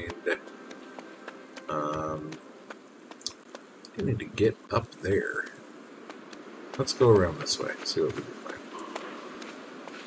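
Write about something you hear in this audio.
Footsteps shuffle on sand.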